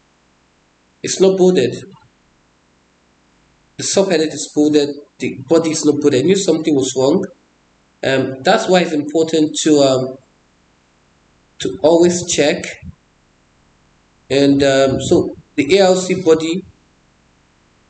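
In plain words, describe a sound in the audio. A man speaks calmly into a close microphone, explaining in short phrases with pauses.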